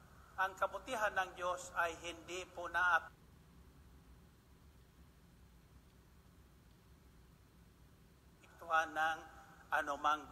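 An older man speaks with animation into a microphone, pausing in the middle.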